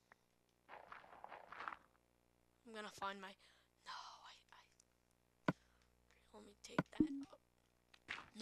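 Blocks of dirt and stone crunch as they are dug away.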